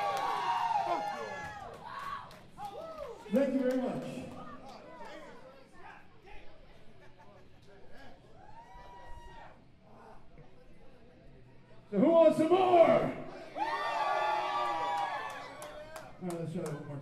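A crowd cheers and screams loudly in a large echoing hall.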